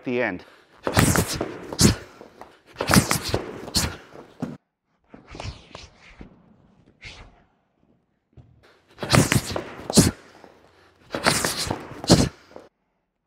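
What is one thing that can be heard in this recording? Punches thud sharply against a body.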